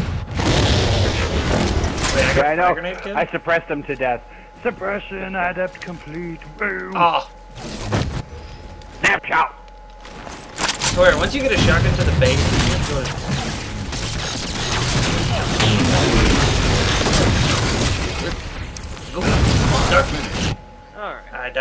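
Guns fire in rapid bursts with loud crackling shots.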